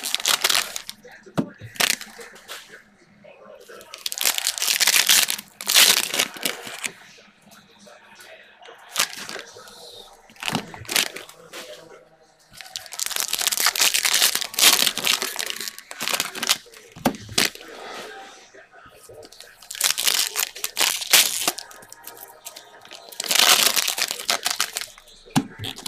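Foil card packs crinkle and tear open close by.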